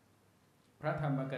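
A man reads out through a microphone.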